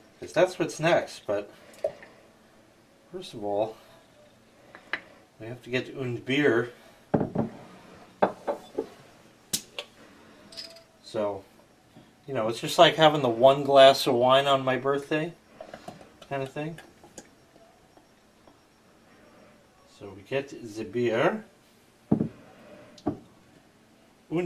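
Beer pours from a bottle into a glass mug, foaming and splashing.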